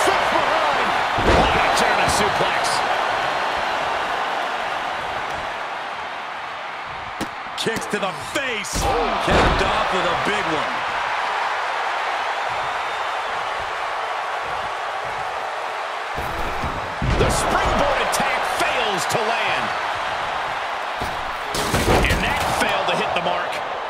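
Heavy bodies slam down hard onto a wrestling mat with loud thuds.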